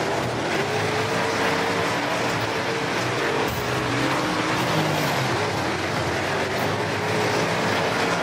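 Dirt and gravel spray and rattle against a car body.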